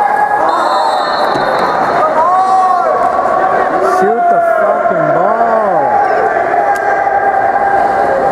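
Water splashes as swimmers kick and stroke.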